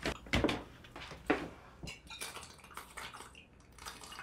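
A young woman gulps a drink from a bottle.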